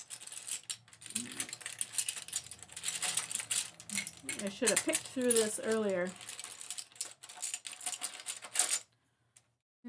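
Seashells clatter and rustle as they are handled.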